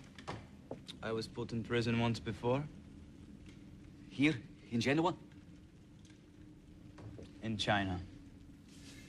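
A man speaks quietly and tensely nearby.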